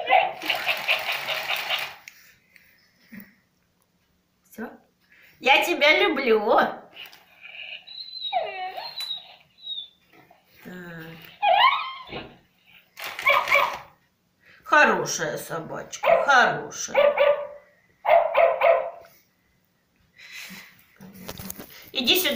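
A toy dog's motor whirs softly as it walks.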